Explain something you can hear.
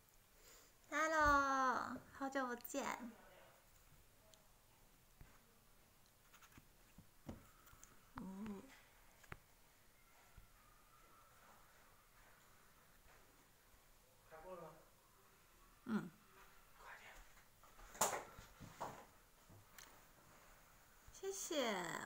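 A young woman speaks softly and playfully close by.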